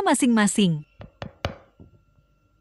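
A metal spoon scrapes and taps against a bowl.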